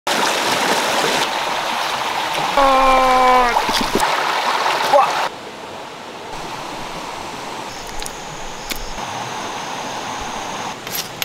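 A shallow stream babbles over stones.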